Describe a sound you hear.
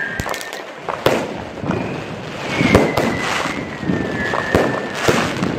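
Fireworks bang and crackle loudly in quick bursts, echoing between buildings.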